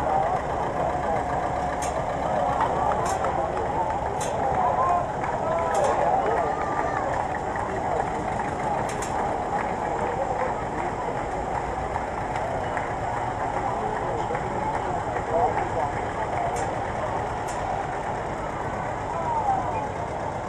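A crowd of onlookers chatters outdoors.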